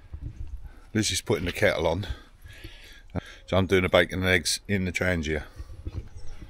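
An older man talks calmly and close by.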